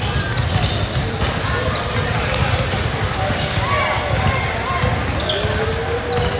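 A basketball bounces on the court.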